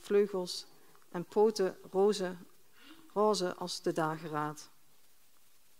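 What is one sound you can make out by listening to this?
A woman reads aloud calmly through a microphone in a large hall.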